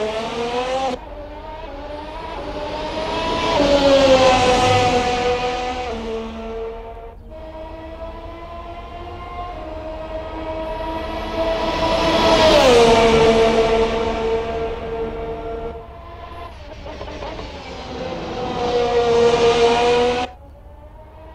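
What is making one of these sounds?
A racing car engine shifts gears with sudden drops in pitch.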